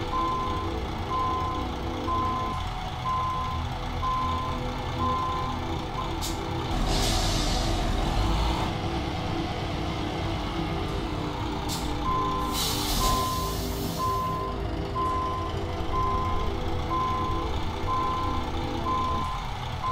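A reversing alarm beeps at an even pace.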